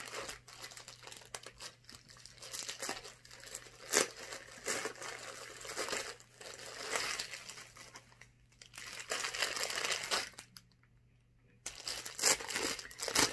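Plastic wrapping crinkles and rustles close by.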